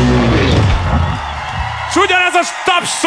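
A drummer pounds drums and crashes cymbals.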